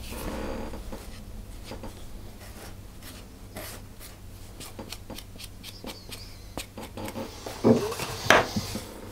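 A wooden spoon scrapes and taps against a glass bowl.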